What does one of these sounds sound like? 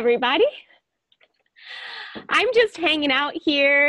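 A young woman speaks with animation and laughs, close to a microphone.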